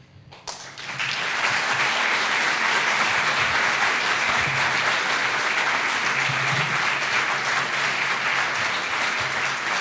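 An audience applauds steadily in a large room.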